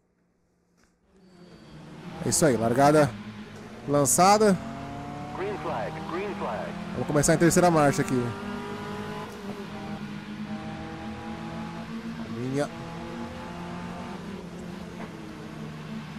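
Racing car engines roar and rev up and down.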